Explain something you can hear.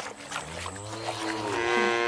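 A whisk stirs liquid in a plastic tub.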